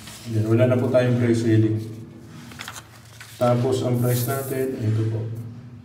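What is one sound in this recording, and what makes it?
A sheet of paper rustles as pages are flipped.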